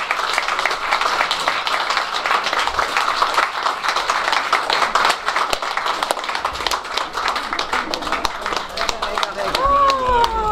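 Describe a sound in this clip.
A crowd applauds loudly in a room.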